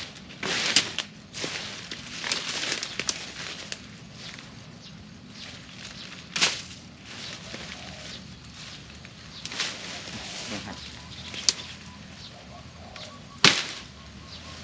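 A machete chops and hacks at plants.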